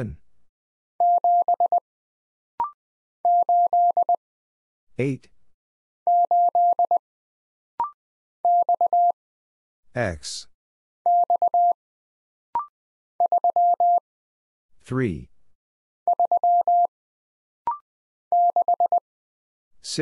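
Morse code beeps out in quick bursts of short and long tones.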